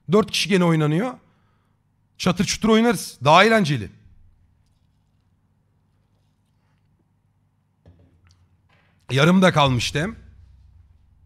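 A man talks animatedly into a close microphone, in short bursts.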